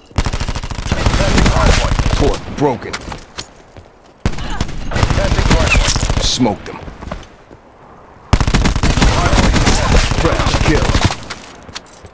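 Rapid automatic gunfire rattles in long bursts.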